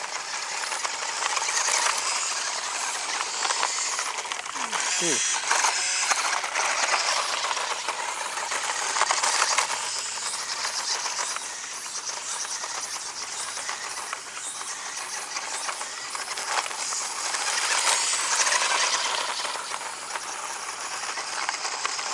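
A small electric motor whines in bursts as a toy car speeds around.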